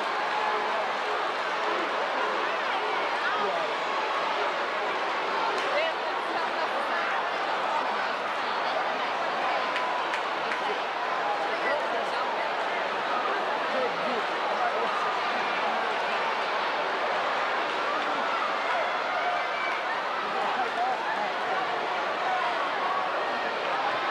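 A large crowd chatters and murmurs steadily in a big echoing arena.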